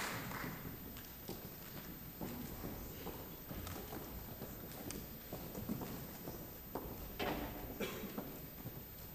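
Footsteps knock on a wooden stage in a large echoing hall.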